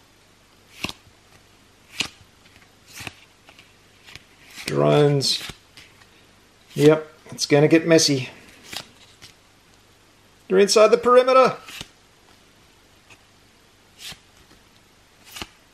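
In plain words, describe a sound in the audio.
Playing cards slide and tap against each other close by.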